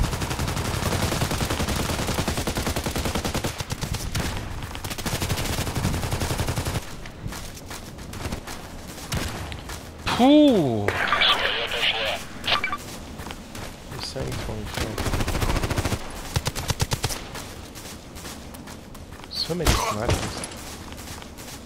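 Footsteps run quickly over grass and rock.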